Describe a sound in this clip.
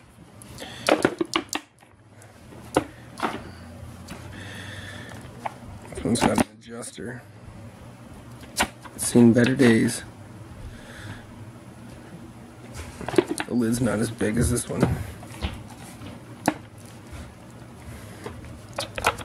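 Plastic parts of a handheld vacuum cleaner click and knock as they are handled and snapped together.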